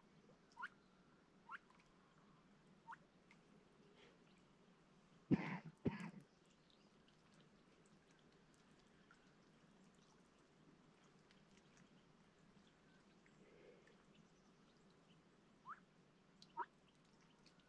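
Ducks give short, sharp calls close by on the water.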